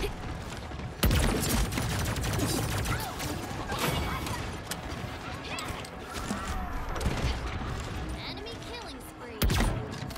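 Gunshots fire in sharp, loud bursts.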